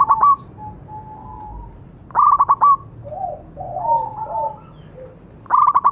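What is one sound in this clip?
A zebra dove coos in short bursts of quick, bubbling notes.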